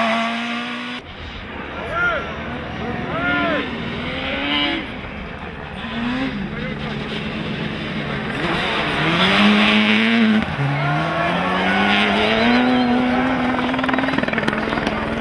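A second rally car engine revs and roars loudly close by.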